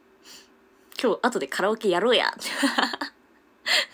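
A young woman laughs loudly, close to a microphone.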